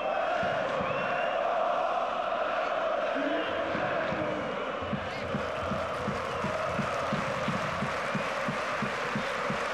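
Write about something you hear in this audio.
A large stadium crowd roars and chants loudly outdoors.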